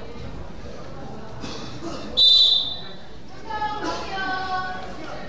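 Young people shout and chatter around a large echoing hall.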